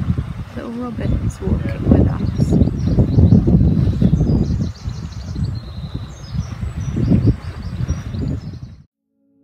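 A small bird sings in short high chirps and trills.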